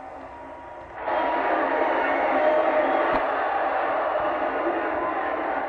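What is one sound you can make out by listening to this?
A television hisses with loud static.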